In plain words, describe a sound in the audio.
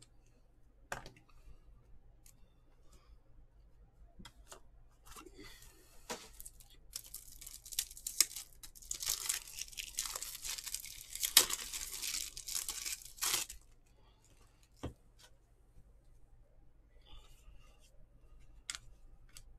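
Trading cards shuffle and rustle between fingers.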